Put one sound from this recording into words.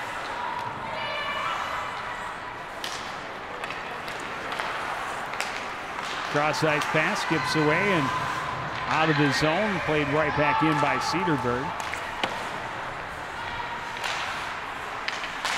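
Hockey sticks clack sharply against a puck.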